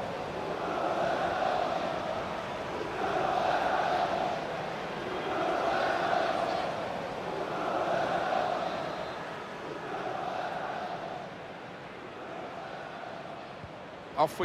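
A large crowd chants rhythmically in a stadium.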